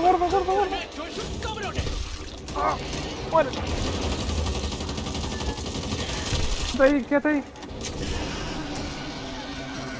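A monster snarls and shrieks.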